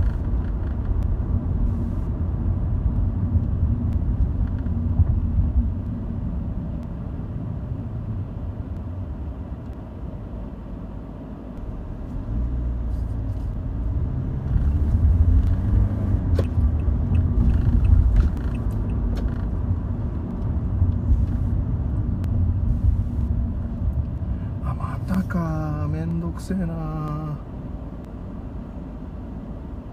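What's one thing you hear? A car engine hums steadily as it drives along a street.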